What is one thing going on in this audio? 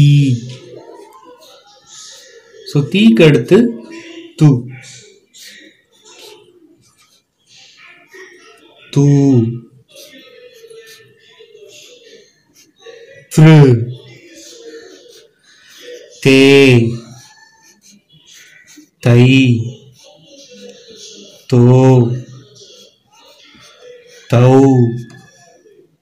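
A marker squeaks and scratches on paper.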